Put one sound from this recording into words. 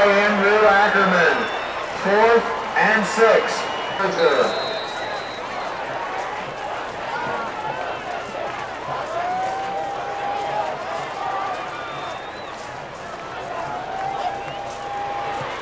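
A crowd in the stands murmurs and shouts outdoors.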